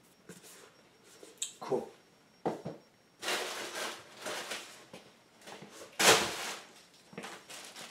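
Cardboard boxes bump and thud as they are handled and set down.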